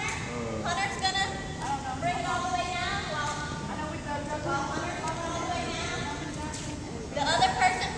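A young woman speaks with animation in a large echoing hall.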